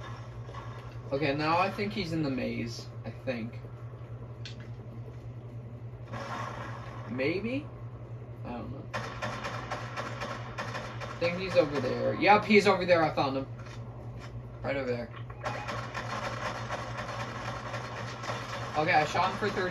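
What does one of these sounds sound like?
Video game sounds play from a television's speakers.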